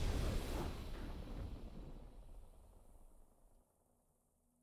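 A triumphant game fanfare rings out and fades away.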